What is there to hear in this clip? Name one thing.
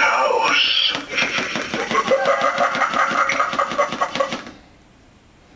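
Spooky music plays through a small tinny loudspeaker and stops abruptly.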